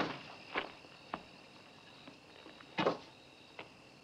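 Objects knock and clatter.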